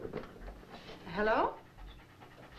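A dog whines.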